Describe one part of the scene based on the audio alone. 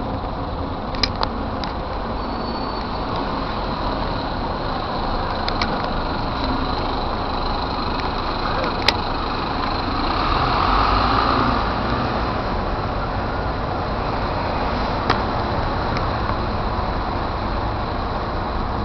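Bus engines rumble and idle close by on a busy street.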